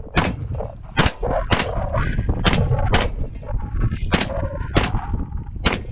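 A gun fires single shots one after another outdoors, each crack echoing briefly.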